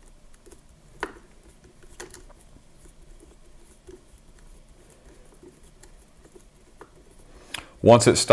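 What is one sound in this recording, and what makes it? A screwdriver clicks softly against a metal screw.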